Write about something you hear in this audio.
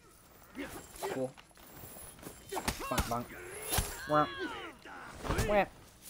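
Steel blades clash and clang in a fight.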